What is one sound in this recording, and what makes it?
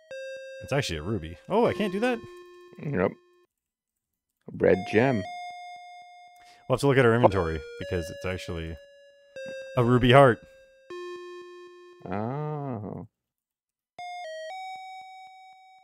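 Simple electronic beeps play in short, steady tones.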